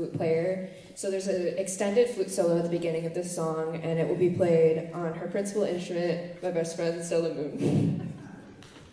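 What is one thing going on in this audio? A school band plays a piece together in a large hall and ends on a held chord.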